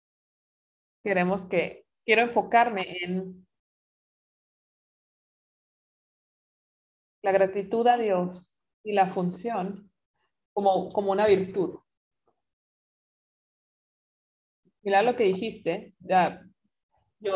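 A woman speaks calmly and clearly into a close microphone, with pauses.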